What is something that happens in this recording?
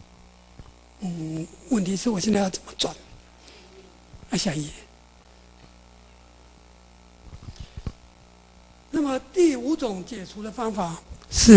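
An elderly man lectures calmly through a microphone, with pauses.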